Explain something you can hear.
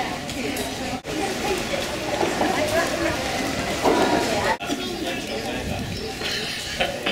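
A crowd of people chatters and walks by outdoors.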